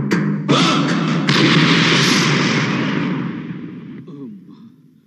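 A man shouts angrily.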